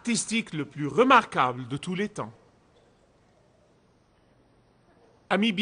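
A middle-aged man speaks with animation into a microphone, pausing briefly.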